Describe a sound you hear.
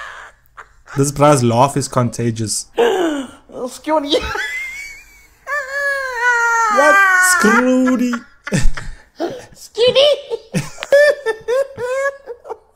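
A man laughs loudly and speaks with animation, heard through a phone recording.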